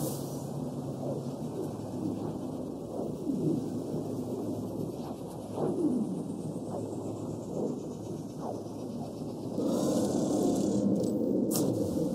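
A deep rushing whoosh roars steadily.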